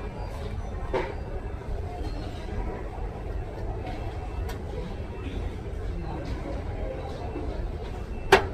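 Glass jars clink softly as they are handled.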